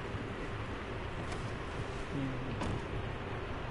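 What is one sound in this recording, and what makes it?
A car door opens and shuts.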